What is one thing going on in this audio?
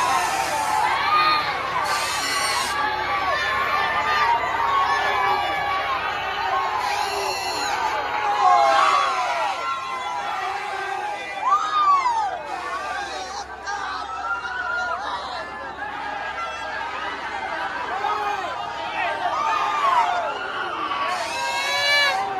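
A large crowd cheers, shouts and whistles all around.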